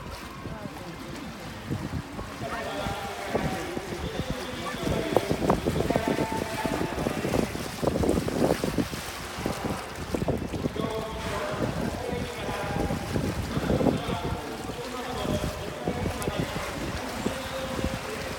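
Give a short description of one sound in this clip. Water laps and sloshes against the sides of a pool.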